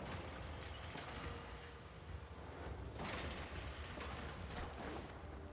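Game sound effects whoosh and rumble over a low hum.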